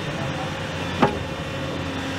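An excavator bucket clanks with a sharp metallic knock.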